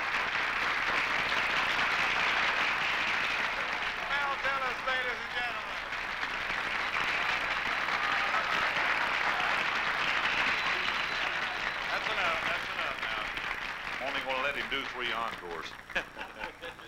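A large audience applauds and cheers loudly.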